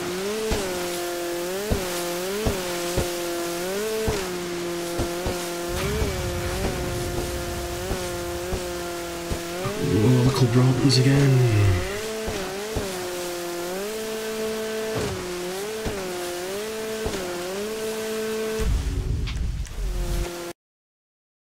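A jet ski engine hums steadily and revs up and down.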